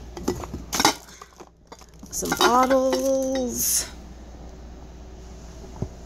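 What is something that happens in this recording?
A glass jar knocks against other things.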